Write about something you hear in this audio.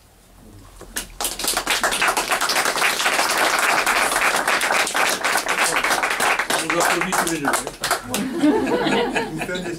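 A group of people applaud.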